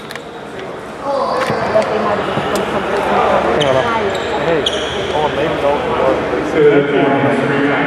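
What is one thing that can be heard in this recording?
Several men talk casually nearby in a large echoing hall.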